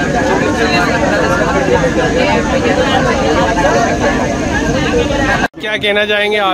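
Many people chatter at once.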